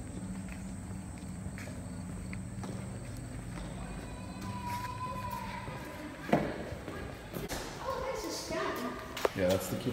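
A child's footsteps tap on wooden boards and concrete.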